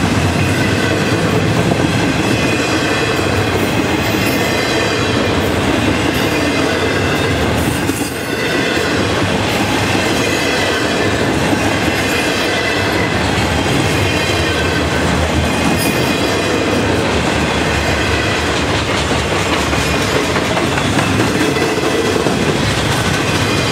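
Steel wheels squeal and screech on the rails.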